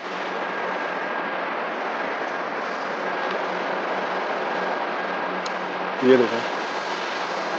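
Oil trickles and drips into a metal tray.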